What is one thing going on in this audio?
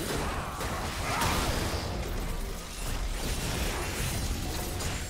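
Video game spell effects and attacks crackle and boom in a fast battle.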